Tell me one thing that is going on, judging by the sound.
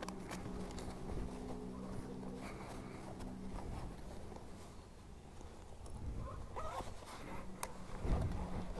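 A motorcycle engine idles with a low steady hum.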